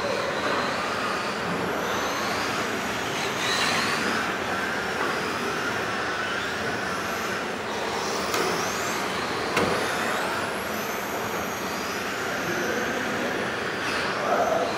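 Small electric motors of remote-control cars whine in a large echoing hall, rising and falling in pitch as the cars speed past.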